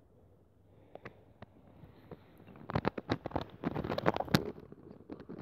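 A fishing reel clicks as it is wound.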